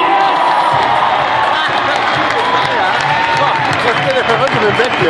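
A large crowd cheers and whistles in a big echoing arena.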